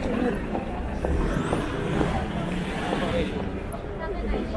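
A truck drives past on the road.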